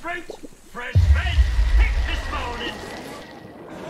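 Water splashes loudly as something plunges in.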